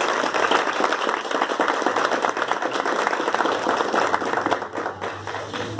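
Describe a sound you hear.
A small audience applauds loudly.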